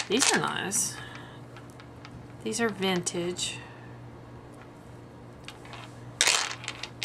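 Beads click softly against each other as they are handled.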